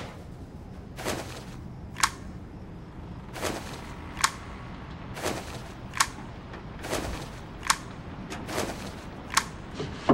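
Footsteps fall slowly and evenly on cobblestones.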